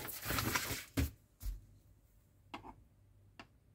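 Small plastic parts click and tap together.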